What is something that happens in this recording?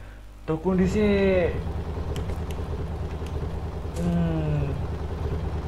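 A motorcycle engine idles with a low rumble.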